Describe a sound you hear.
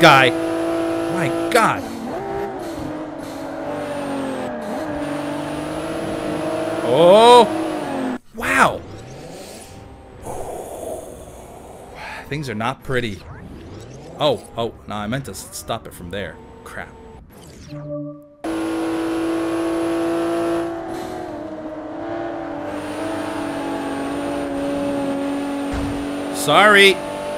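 A racing car engine roars at speed, shifting gears.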